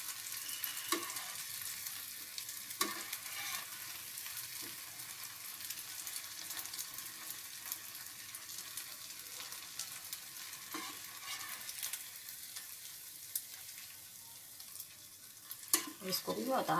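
A metal spoon clinks against the pan.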